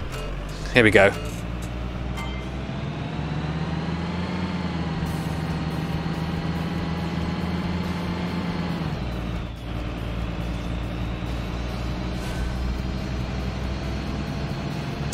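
A bus engine hums steadily and rises in pitch as it speeds up.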